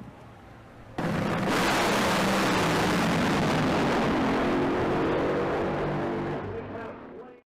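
Drag racing engines roar loudly and fade down the track.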